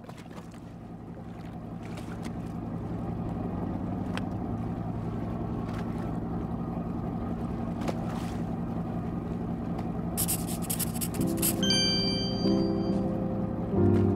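Water swishes and splashes against a boat's hull.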